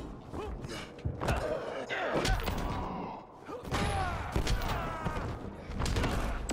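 Fiery blasts whoosh and crackle.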